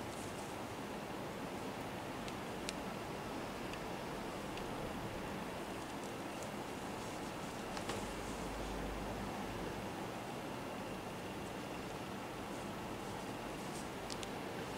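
Knitted fabric rustles softly as hands handle it.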